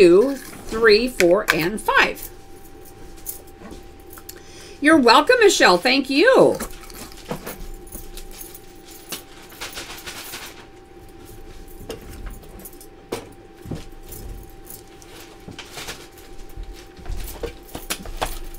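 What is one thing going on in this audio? Small objects clink and rattle on a table.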